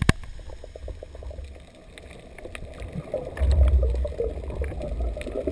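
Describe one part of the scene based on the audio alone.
Water rushes, muffled, while moving underwater.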